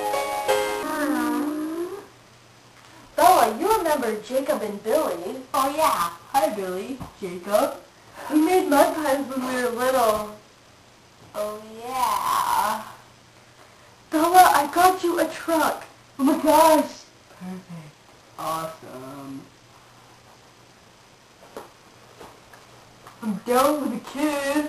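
Children talk in high, playful voices close by.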